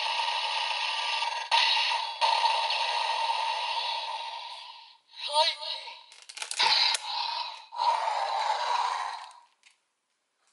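A toy blaster plays loud electronic sound effects and music through a small speaker.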